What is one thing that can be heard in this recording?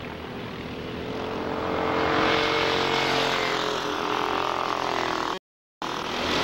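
A kart engine roars up close.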